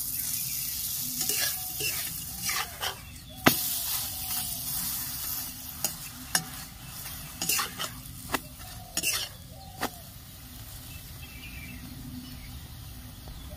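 Flatbread sizzles softly in a hot pan.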